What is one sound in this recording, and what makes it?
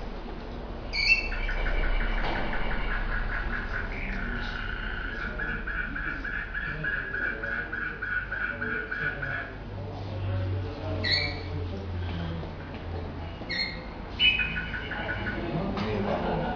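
Small birds sing in rapid trilling bursts and chirps, heard through a television's speaker.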